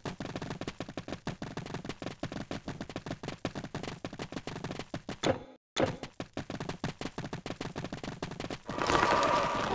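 Footsteps tap quickly and steadily on stone.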